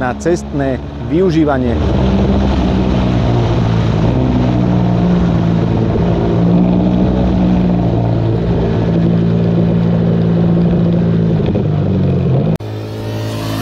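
A motorcycle engine roars steadily up close.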